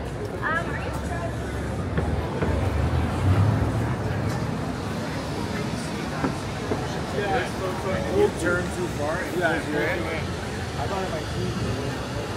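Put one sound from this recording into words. Men and women chat nearby on an outdoor street.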